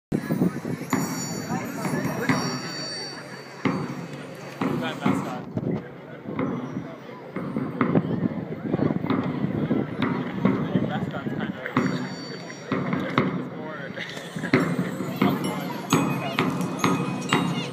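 A marching band plays brass loudly outdoors.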